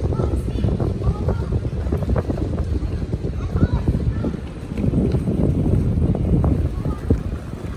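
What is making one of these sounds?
People chatter faintly in the distance outdoors.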